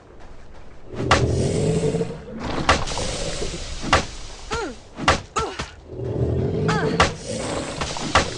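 A character strikes zombies with a melee weapon in quick thuds.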